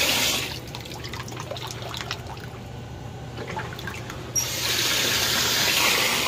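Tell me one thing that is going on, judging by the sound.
Water sloshes and splashes as a hand swirls it.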